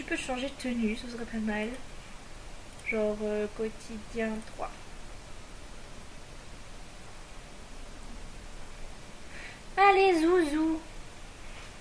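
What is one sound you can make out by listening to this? A woman talks animatedly into a microphone, close up.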